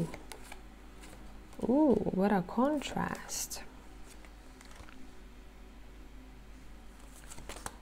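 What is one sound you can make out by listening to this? Playing cards softly rustle and slap as they are shuffled and laid down.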